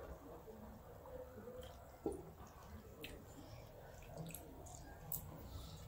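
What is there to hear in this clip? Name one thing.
Rice is scooped from a plate with a light scrape.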